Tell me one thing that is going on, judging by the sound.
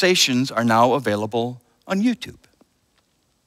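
A man speaks through a microphone in a slow, chanting voice.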